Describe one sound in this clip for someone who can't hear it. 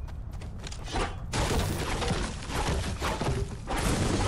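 A pickaxe chops into a tree trunk with sharp knocks.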